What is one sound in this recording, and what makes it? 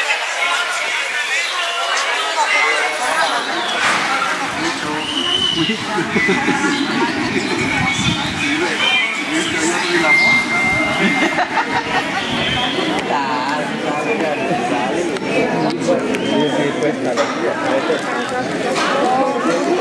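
A crowd of adults chatters all around outdoors.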